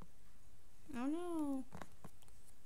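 A pig grunts briefly.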